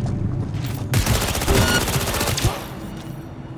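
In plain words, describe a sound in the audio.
A rifle is reloaded with sharp metallic clicks.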